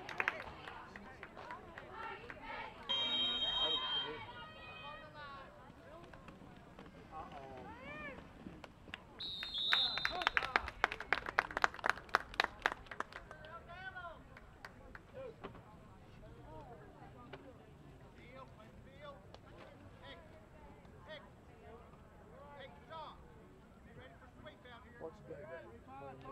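A crowd of spectators shouts and cheers from nearby stands outdoors.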